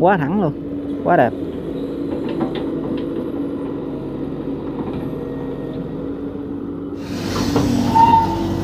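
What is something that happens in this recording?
An excavator bucket scrapes and drops wet earth.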